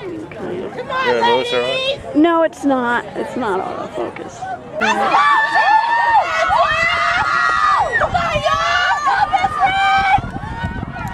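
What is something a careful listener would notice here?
Voices of young women and men shout encouragement nearby.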